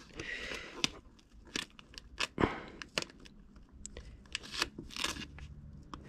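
Gloved fingers rub and crinkle against a plastic trim strip.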